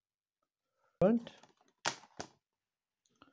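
A plastic disc case rattles as a hand picks it up and turns it over.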